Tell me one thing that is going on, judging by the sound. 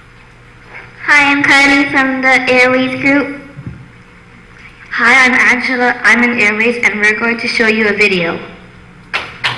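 A young girl speaks clearly into a microphone, her voice carried through a loudspeaker.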